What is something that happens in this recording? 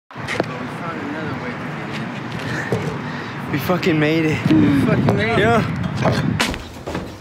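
A young man talks with animation close to a microphone, outdoors.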